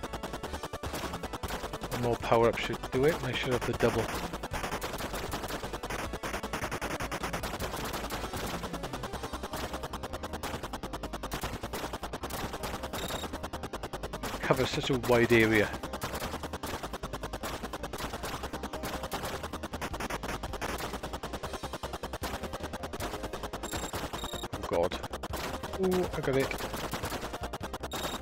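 Rapid electronic gunfire rattles steadily in a retro video game.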